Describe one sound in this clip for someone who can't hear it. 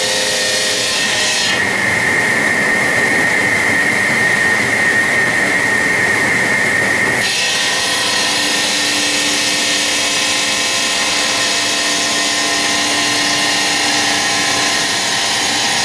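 Water sprays and splashes onto the cutting blade.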